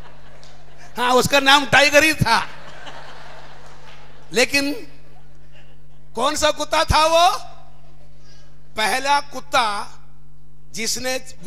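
A young man speaks loudly in short bursts.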